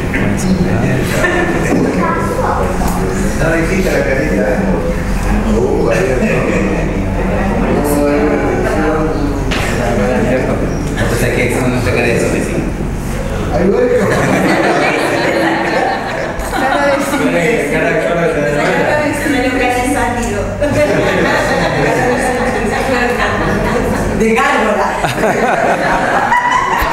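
Several adults talk and laugh at once in an echoing room.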